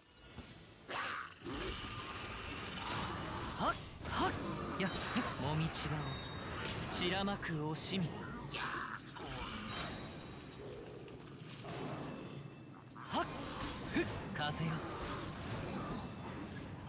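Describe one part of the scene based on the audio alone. Swords swish and slash rapidly in a fight.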